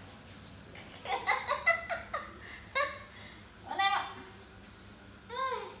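A young woman speaks animatedly close by.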